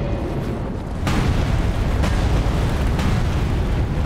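A heavy stone blow crashes down with a loud rumbling thud.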